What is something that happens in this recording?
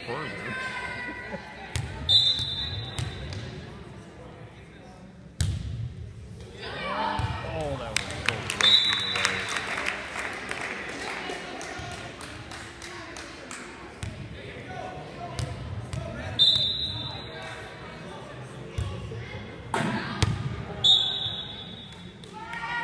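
Spectators cheer and call out in an echoing hall.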